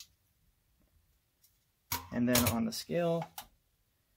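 A metal caliper clicks as it is set down on a hard surface.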